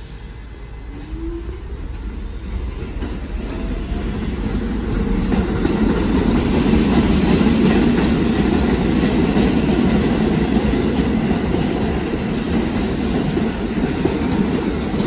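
A subway train rumbles and clatters along the tracks, growing louder as it pulls away.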